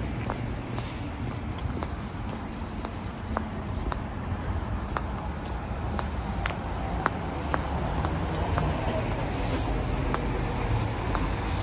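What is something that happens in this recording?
A plastic bag rustles and crinkles against the handlebar.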